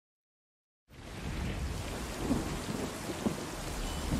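Rain pours steadily outdoors.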